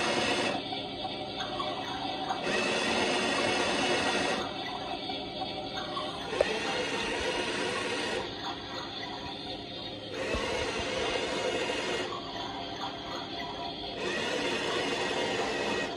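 A small toy washing machine whirs steadily, its pitch changing every couple of seconds.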